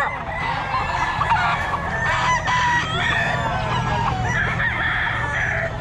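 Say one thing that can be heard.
A rooster pecks and rustles a plastic bag on the ground.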